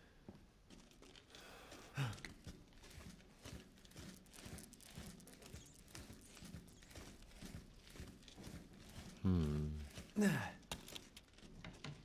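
Footsteps echo steadily.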